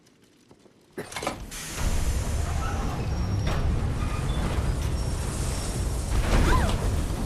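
A heavy train engine rumbles and roars loudly.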